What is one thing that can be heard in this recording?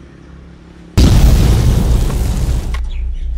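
A large gong is struck and rings loudly.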